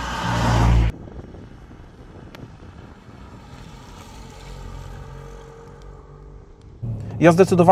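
A car drives past and pulls away with its engine humming.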